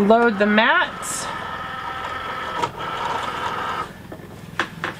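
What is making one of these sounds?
A cutting machine whirs as it pulls in a mat.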